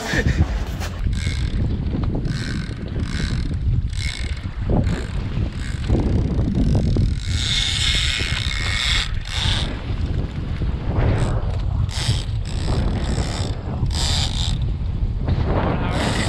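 Wind buffets loudly outdoors at sea.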